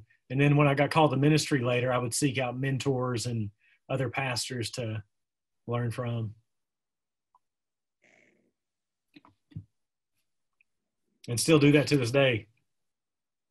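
A man speaks calmly through a microphone in an online call.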